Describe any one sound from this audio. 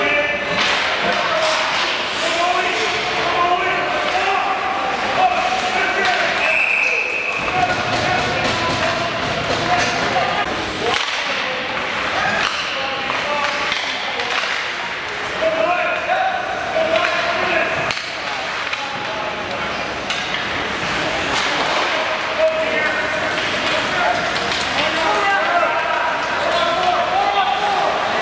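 A man talks nearby in a large echoing arena.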